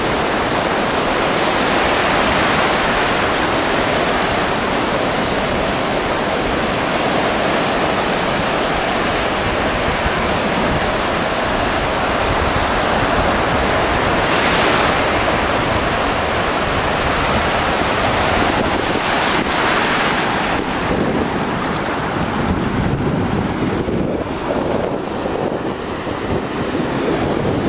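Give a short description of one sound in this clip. Waves crash and roar steadily.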